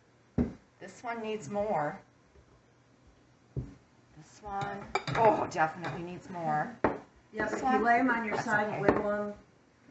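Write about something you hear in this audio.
Glass jars clink and knock against a counter.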